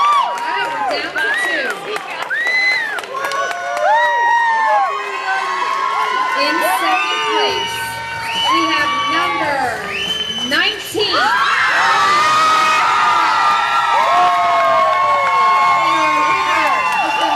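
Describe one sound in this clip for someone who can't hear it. A crowd cheers and whistles loudly in a large hall.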